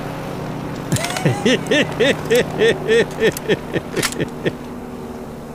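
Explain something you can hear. A shotgun is broken open and reloaded with rapid metallic clicks.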